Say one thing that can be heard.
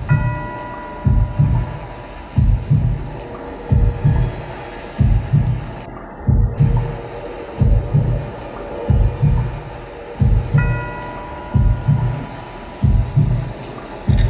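A drum kit pounds a heavy, steady beat.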